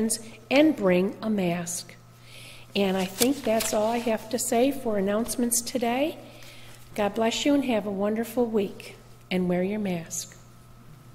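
An elderly woman speaks calmly into a microphone in an echoing hall.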